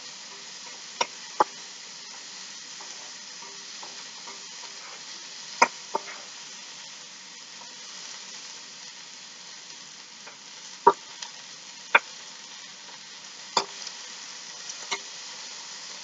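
A utensil clanks against a metal pan.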